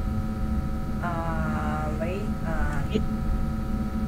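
A young woman speaks briefly and expressively into a microphone.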